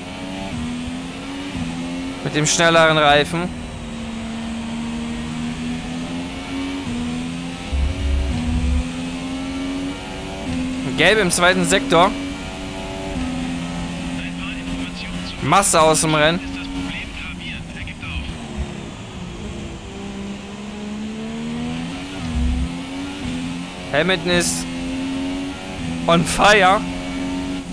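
A racing car engine roars steadily and climbs in pitch through quick gear changes.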